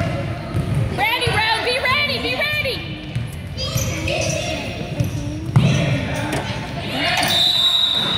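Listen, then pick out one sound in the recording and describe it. Sneakers squeak sharply on a hard floor in a large echoing gym.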